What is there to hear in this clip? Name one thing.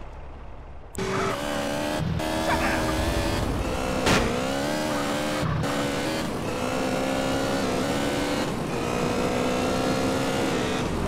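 A motorcycle engine roars and revs, shifting up through the gears.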